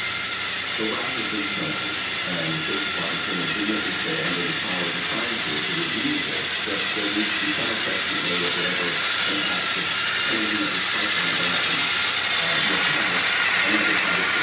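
A toy train rattles along plastic tracks, drawing closer.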